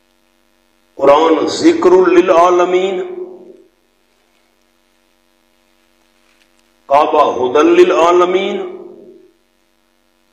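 A man chants melodiously through a microphone, in two short phrases.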